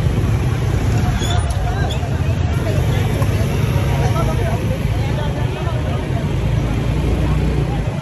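Voices of men and women chatter at a distance.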